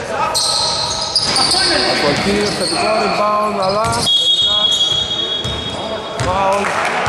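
Young men shout and call out across an echoing hall.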